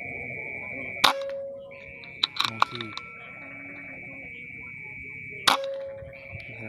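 A PCP air rifle fires with a sharp crack.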